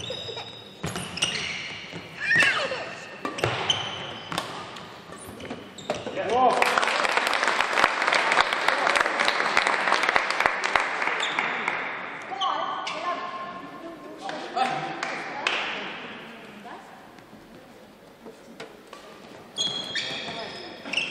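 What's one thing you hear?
A shuttlecock is struck sharply with rackets in a rally.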